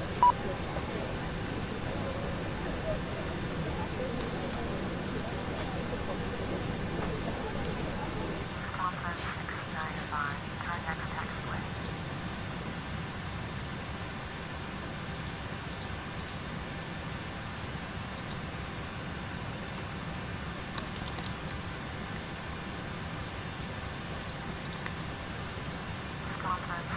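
A low, steady hum of aircraft engines fills the cockpit.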